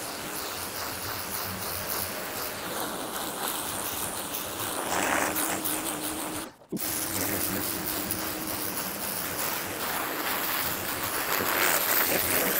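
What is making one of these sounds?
A pressure washer sprays water hard against a surface with a steady hiss.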